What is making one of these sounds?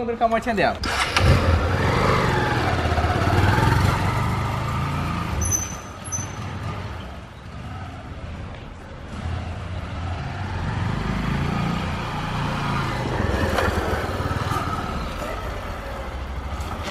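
A motorcycle engine rumbles and revs.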